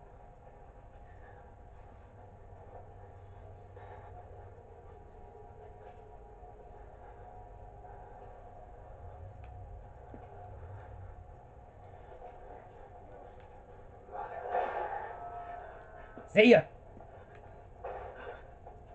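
Low, eerie game sounds play quietly from a television.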